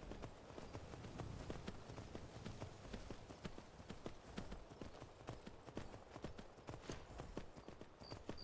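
Horse hooves clop steadily on stony ground.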